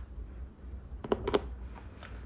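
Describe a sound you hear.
A small metal part clicks against a metal assembly.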